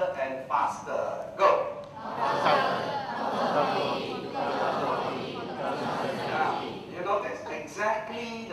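A man speaks with animation through a microphone in a large echoing hall.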